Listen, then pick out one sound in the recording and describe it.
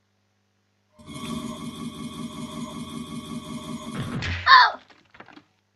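A harsh, droning musical sting plays loudly and then cuts off abruptly.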